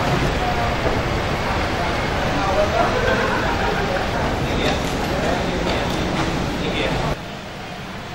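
Men chatter nearby in a crowd outdoors.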